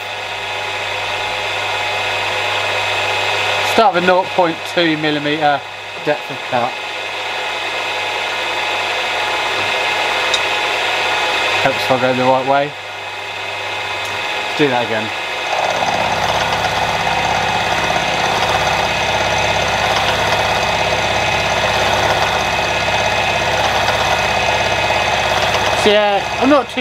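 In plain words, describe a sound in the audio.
A milling machine hums steadily.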